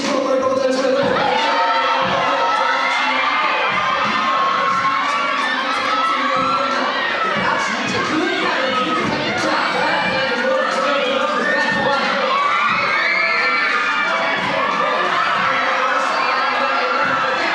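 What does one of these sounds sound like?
A crowd of young people cheers and screams loudly in an echoing hall.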